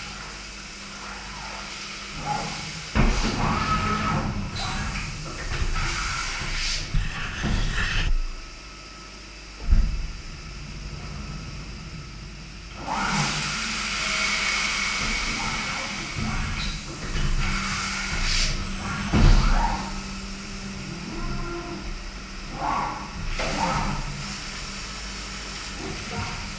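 A machine whirs and clunks as it moves.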